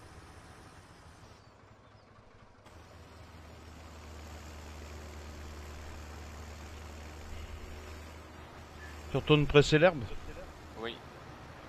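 A tractor engine rumbles low and steady.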